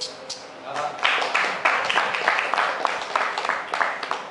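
A man claps his hands in a quick rhythm.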